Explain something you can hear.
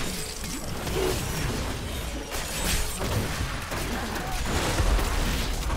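Fiery spell blasts crackle and boom in a video game.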